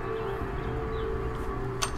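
A rifle's metal parts click as it is handled.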